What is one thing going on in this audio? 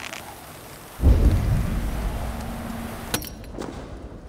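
A deep boom rumbles and slowly fades.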